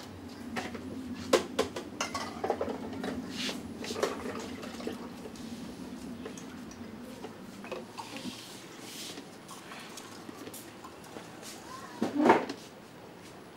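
A man knocks and clatters with small objects close by.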